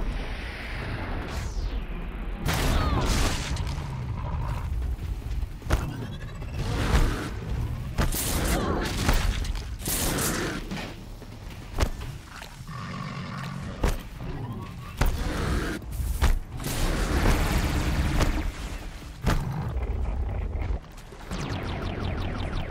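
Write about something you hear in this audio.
A bow string twangs as arrows are shot.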